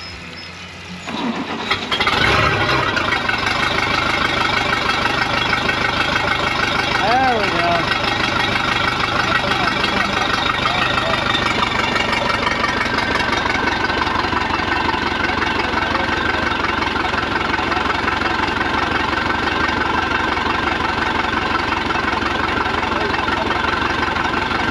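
A boat's outboard motor starts up and runs loudly at a steady idle.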